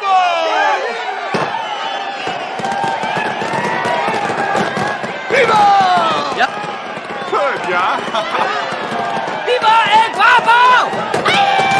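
Pistols fire shots into the air.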